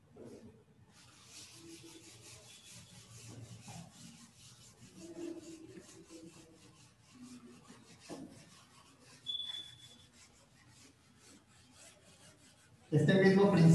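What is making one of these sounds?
An eraser rubs and squeaks against a whiteboard.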